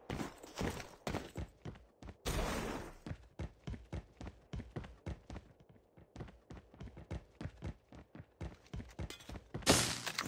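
Game footsteps thud quickly on a tiled floor.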